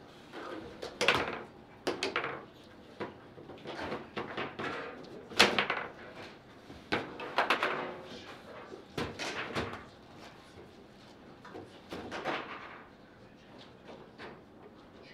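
Table football rods clack and spin.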